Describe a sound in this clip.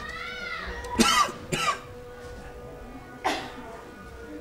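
A man coughs into his hand.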